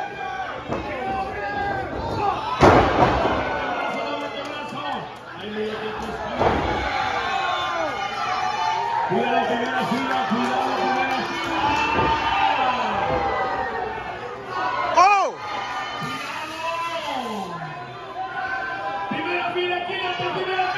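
A crowd shouts and chants loudly in an echoing hall.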